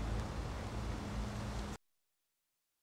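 A bicycle rolls quietly along a paved path.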